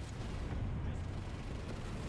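A gun fires in rapid bursts of sharp shots.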